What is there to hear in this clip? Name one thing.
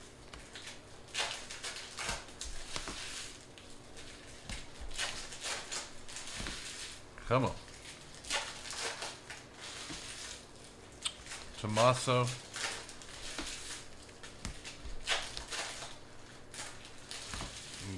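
Trading cards slide and rustle against each other as they are shuffled by hand.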